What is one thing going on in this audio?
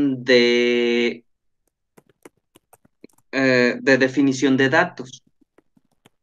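A young man speaks with animation, close to a microphone over an online call.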